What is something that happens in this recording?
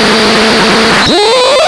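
A high electronic tone swoops sharply upward.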